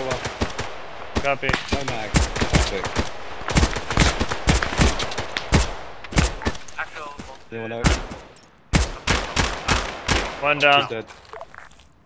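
Rifle shots crack in rapid, uneven bursts nearby.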